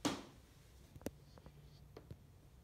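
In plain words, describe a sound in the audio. Fingers tap and knock lightly on a hollow case.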